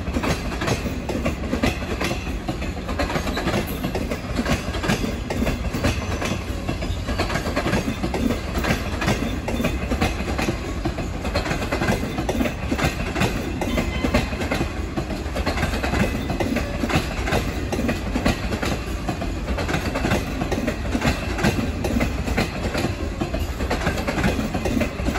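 Train wheels clack rapidly over rail joints.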